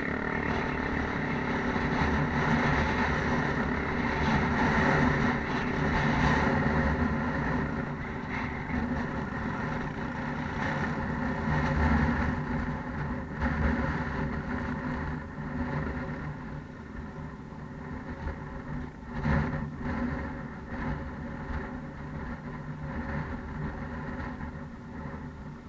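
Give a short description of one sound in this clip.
Tyres crunch over a rocky dirt track.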